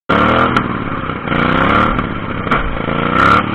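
A mower knocks and thumps over bumps.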